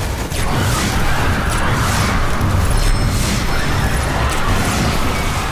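Gunfire and explosions boom loudly in a game.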